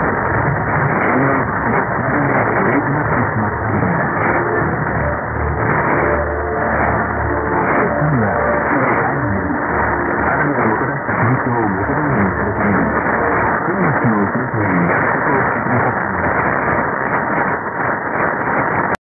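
A shortwave radio signal hisses with heavy, crackling static.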